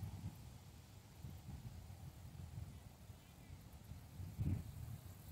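Wind rumbles across an open stretch of water outdoors.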